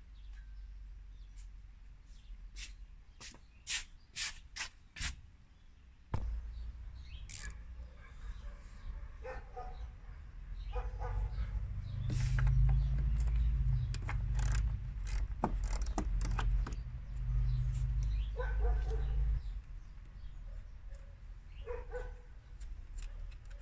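Plastic connectors click and rattle.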